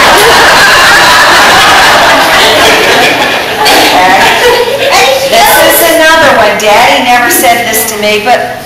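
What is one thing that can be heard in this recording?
A middle-aged woman speaks calmly into a microphone in an echoing hall.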